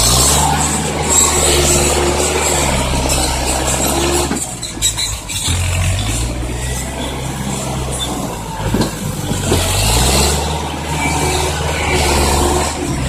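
A truck's diesel engine rumbles and revs nearby.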